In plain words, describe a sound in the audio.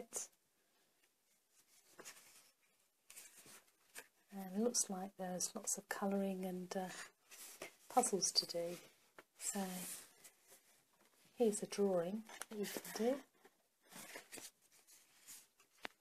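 Paper pages rustle and crinkle as they are turned and handled.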